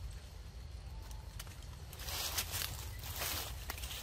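Dry leaves rustle as a monkey jumps down.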